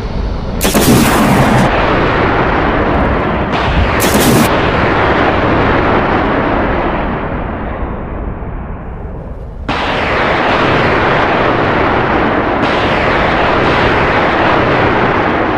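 A jet engine roars steadily overhead.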